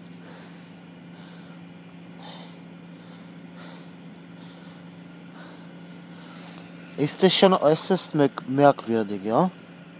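Snow crunches softly as a hand squeezes it.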